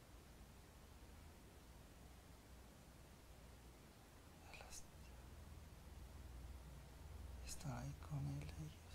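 A man snores softly and deeply nearby.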